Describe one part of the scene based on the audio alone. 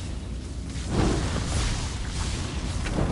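A fiery blast booms and roars.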